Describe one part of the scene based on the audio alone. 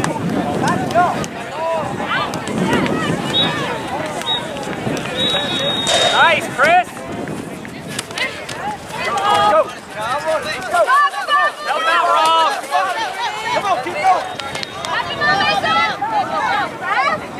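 A soccer ball thuds as it is kicked.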